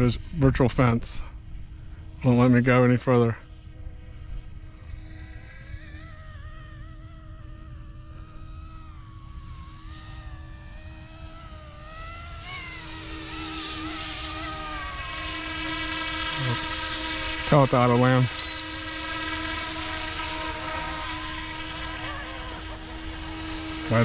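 A small model airplane engine buzzes overhead, rising and falling in pitch as it passes.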